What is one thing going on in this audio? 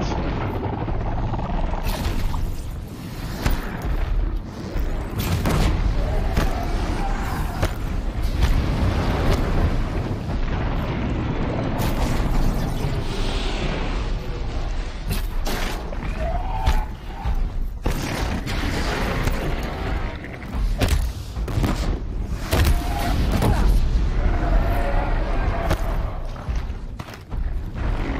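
Explosions and machine roars rumble and crash loudly.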